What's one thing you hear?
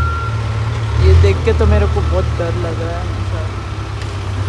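A man talks briefly nearby.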